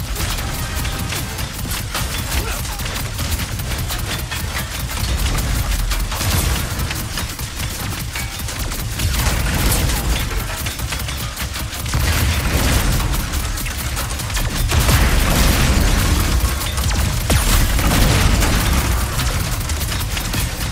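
Explosions boom with deep rumbling.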